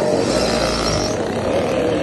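A small motorbike engine revs loudly nearby.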